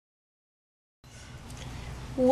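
A teenage girl speaks softly close by.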